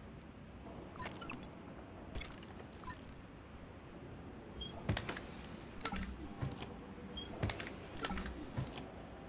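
Short electronic clicks and blips sound as menu items are picked.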